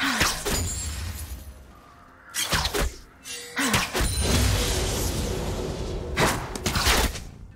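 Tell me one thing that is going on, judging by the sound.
Spell effects burst and zap in a game fight.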